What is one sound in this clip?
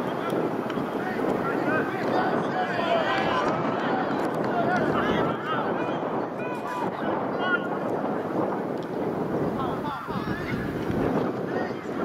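Players shout to each other across an open field.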